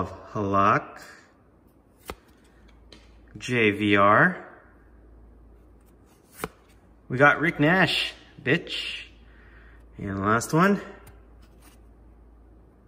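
Trading cards rustle softly as fingers slide them apart.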